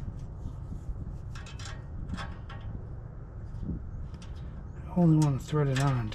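A wrench clicks and scrapes against a metal bolt.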